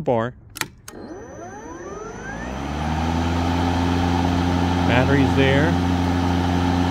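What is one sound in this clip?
An electric lawn mower motor whirs up and then hums steadily.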